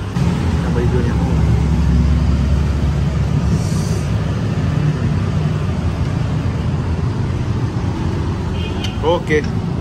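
A metal ladle scrapes and clinks against a pot.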